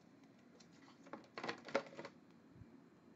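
A plastic card case rustles and clicks as hands handle it.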